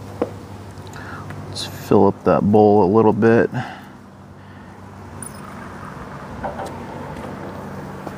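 Liquid trickles into a plastic cup.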